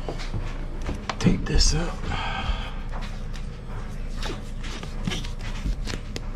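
A rubber seal rustles and flaps as hands handle it close by.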